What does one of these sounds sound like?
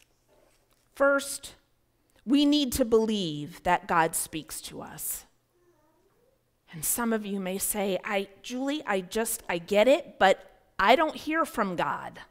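A woman speaks calmly into a microphone in a large echoing room.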